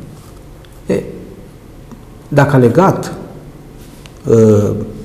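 A middle-aged man speaks calmly and clearly into a microphone, in short bursts.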